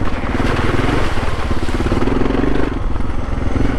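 Water splashes under a motorcycle's tyres.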